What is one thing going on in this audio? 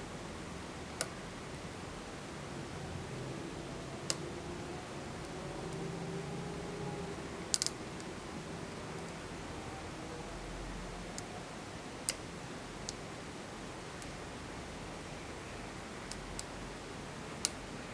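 Metal lock picks click and tick softly inside a lock.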